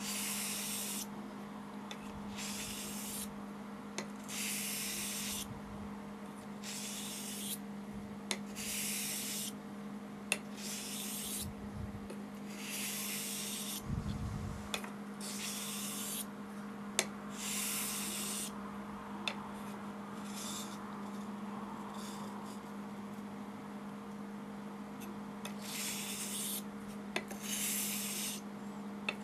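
A steel razor blade scrapes in long strokes across a wet whetstone.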